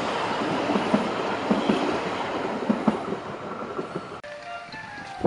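A train carriage rumbles and clatters past close by.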